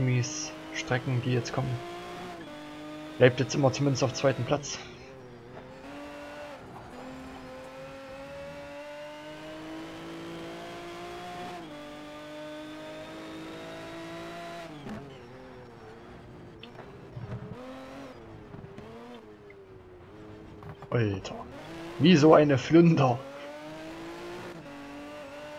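A racing car engine roars at full throttle, rising through the gears.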